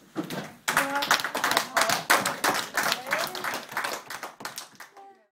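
Young children cheer with high voices.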